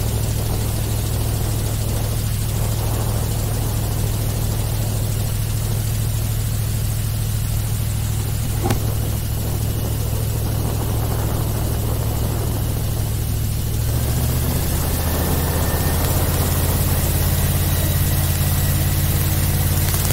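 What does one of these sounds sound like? An airboat's engine and propeller drone loudly and steadily.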